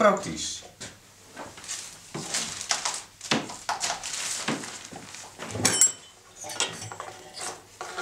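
Wooden boards knock and scrape as a man handles them.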